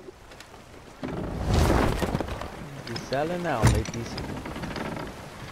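Wind blows through the ship's sails.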